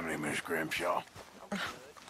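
A man speaks calmly and warmly.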